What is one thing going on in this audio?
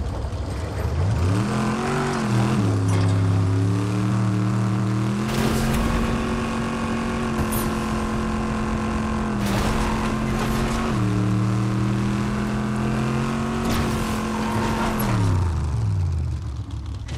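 A vehicle engine revs up and roars steadily, rising and falling in pitch.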